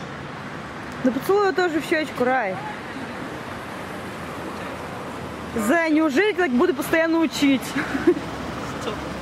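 A man talks close by, casually.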